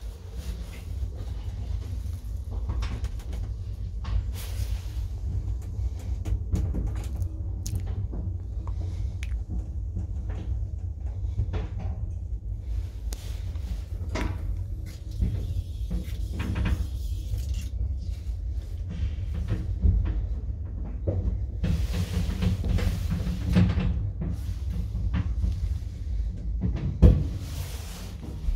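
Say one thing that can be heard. An elevator hums steadily as it moves between floors.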